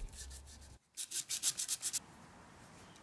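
A small hand saw cuts rapidly back and forth.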